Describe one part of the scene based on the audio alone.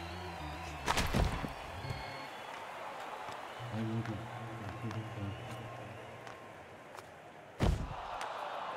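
Hockey sticks slap a puck with sharp cracks.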